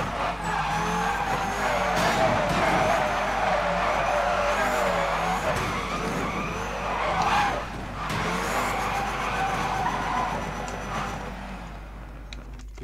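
A car engine revs hard and roars.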